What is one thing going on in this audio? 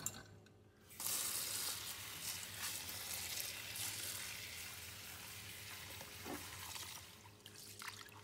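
Tap water pours and splashes onto rice in a container.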